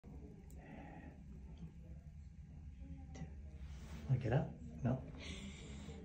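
An elderly man speaks calmly up close.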